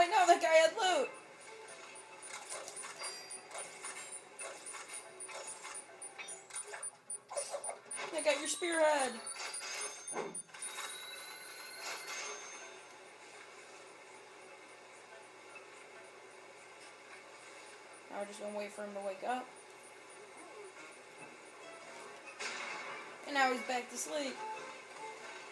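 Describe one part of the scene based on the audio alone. Cartoonish game sound effects play from a television speaker.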